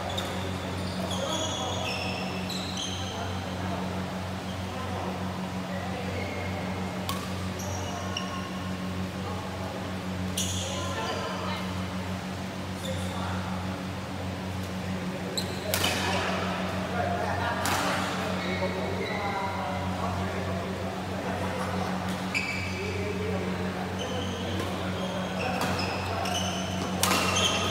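Voices of several people echo around a large hall.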